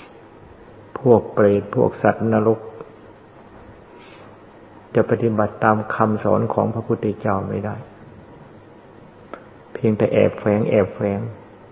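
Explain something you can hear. An elderly man speaks calmly and slowly, close to a microphone.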